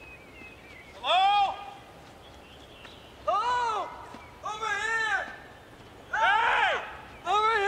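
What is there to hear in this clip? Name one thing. A young man shouts loudly and desperately, calling out again and again outdoors.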